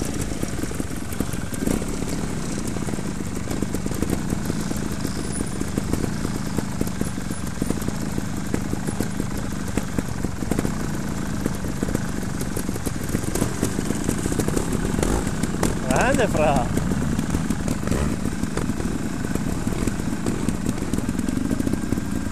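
A flag flaps in the wind.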